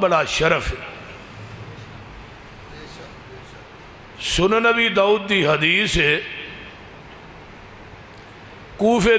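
A man chants in a melodic, drawn-out voice through a microphone and loudspeakers, with pauses between phrases.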